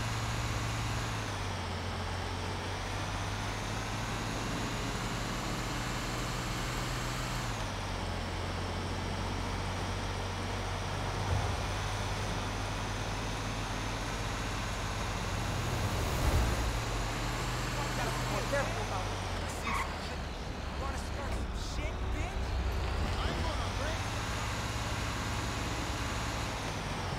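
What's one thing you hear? A heavy truck engine rumbles steadily as it drives along.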